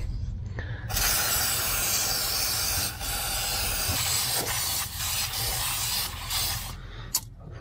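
An aerosol can sprays with a loud, steady hiss.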